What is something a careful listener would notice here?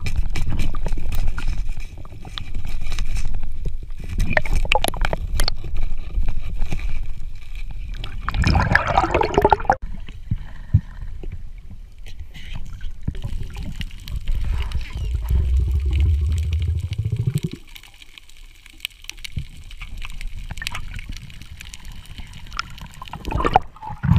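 Water rumbles and swishes close by underwater.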